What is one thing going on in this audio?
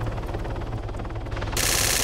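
A helicopter drones overhead.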